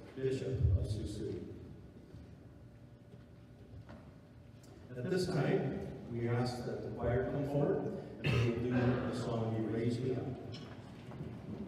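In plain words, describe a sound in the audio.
A man speaks into a microphone over loudspeakers, echoing in a large hall.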